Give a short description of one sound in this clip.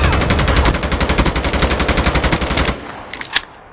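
A rifle fires in a rapid automatic burst.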